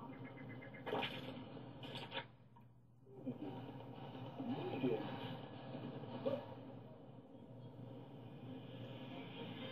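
Video game sounds play from a television.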